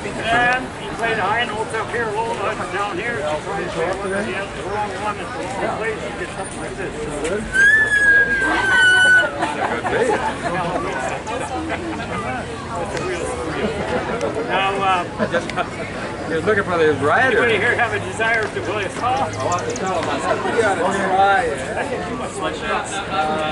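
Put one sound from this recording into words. Men and women chatter close by.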